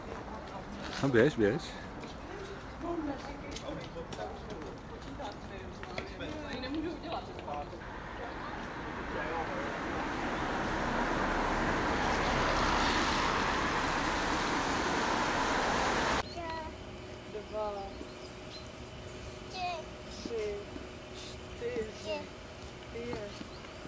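A small girl speaks in a high voice close by.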